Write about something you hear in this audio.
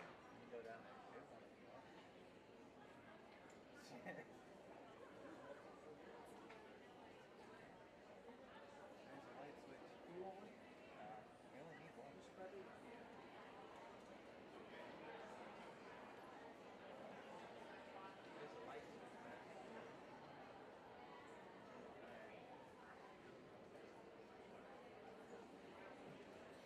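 Musicians murmur and shuffle about in a large echoing hall.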